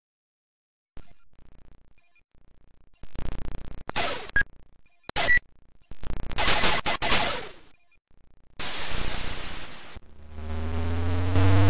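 Electronic blips, zaps and bleeps from a video game come in short bursts.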